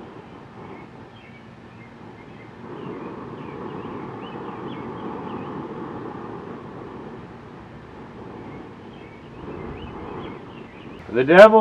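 Oil sizzles and bubbles in a frying pan.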